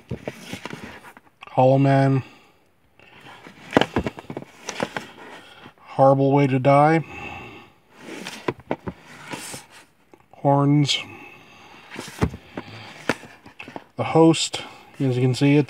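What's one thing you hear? Plastic disc cases clack and scrape as they are pulled from a shelf.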